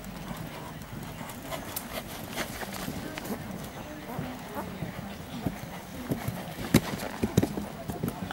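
Horses' hooves thud softly on sand at a trot.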